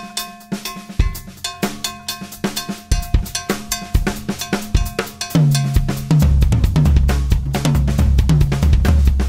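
A bass drum thumps along, growing heavier.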